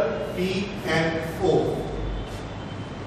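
A man speaks calmly.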